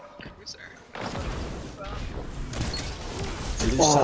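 Gunfire crackles in a video game.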